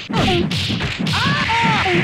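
A blast booms loudly.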